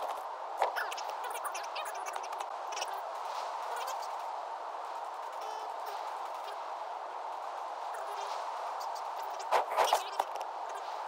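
Game menu clicks sound sharply.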